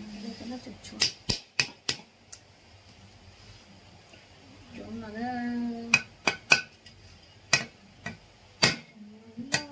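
A knife blade knocks sharply against a ceramic piggy bank.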